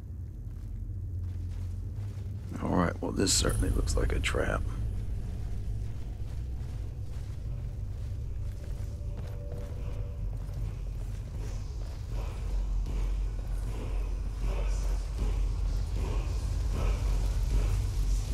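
Footsteps run on a stone floor.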